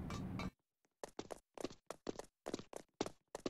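Footsteps tap quickly on a hard tiled floor.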